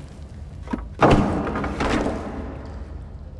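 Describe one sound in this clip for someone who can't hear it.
A wooden board crashes down with a loud clatter.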